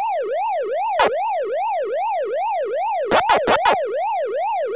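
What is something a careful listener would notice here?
Short electronic blips chirp from an arcade game.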